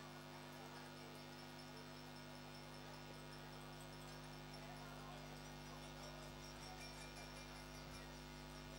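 A man speaks into a microphone through loudspeakers in a large echoing hall.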